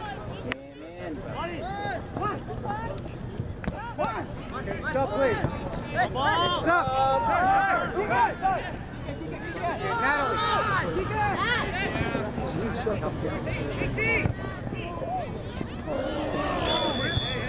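Young women and girls shout and call out across an open field outdoors.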